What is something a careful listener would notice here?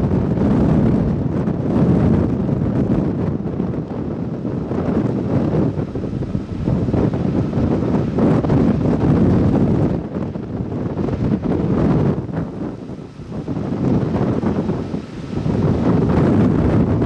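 Strong wind gusts and rumbles against the microphone outdoors.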